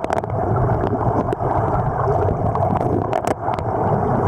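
A hand knocks and scrapes on stones underwater.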